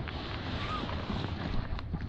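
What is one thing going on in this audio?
Ducks call from across the water.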